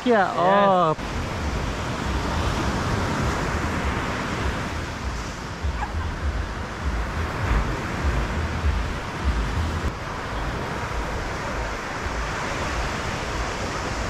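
Waves wash onto a sandy shore in the distance.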